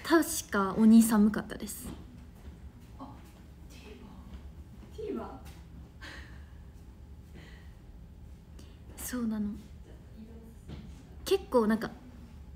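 A young woman speaks softly and close up, in short bursts with pauses.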